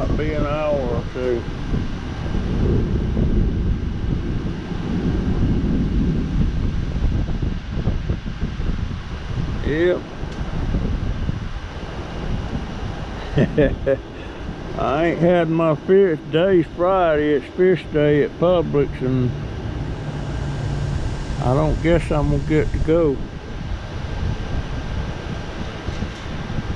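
Wind blows in gusts against the microphone outdoors.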